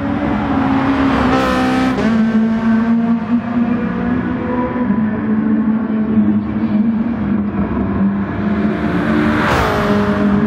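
A racing car whooshes past up close.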